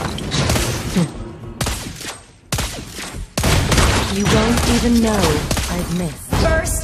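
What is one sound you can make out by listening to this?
Game spell blasts and weapon strikes crackle and thud in quick bursts.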